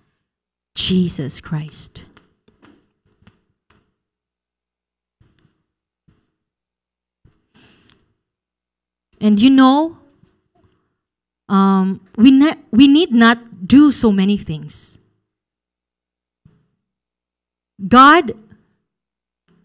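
A young woman speaks into a microphone in short bursts with pauses.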